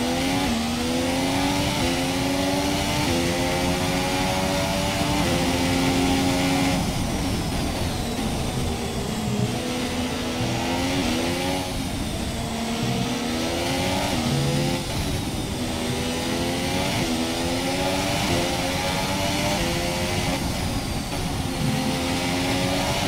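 A racing car engine screams, rising in pitch through each gear and dropping on every shift and braking.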